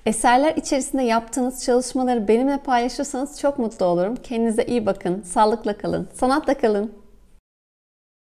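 A young woman speaks calmly and warmly into a clip-on microphone, close by.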